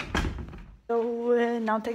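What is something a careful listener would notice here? A young woman speaks up close.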